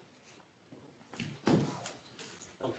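A laptop is set down on a hard desk with a thud.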